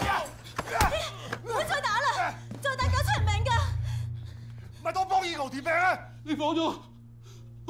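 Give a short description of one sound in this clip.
A man shouts in pain and pleads.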